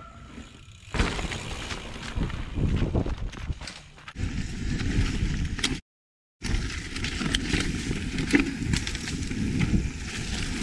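Bicycle tyres rumble and rattle over a bumpy dirt trail.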